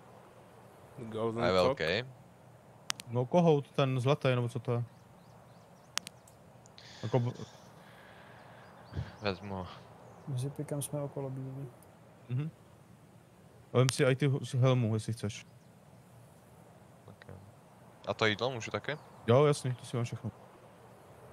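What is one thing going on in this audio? A man talks casually into a close microphone, in short bursts.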